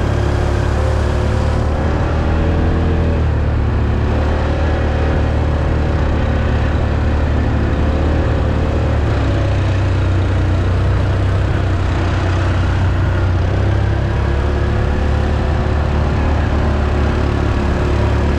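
A quad bike engine rumbles close by, steady and loud.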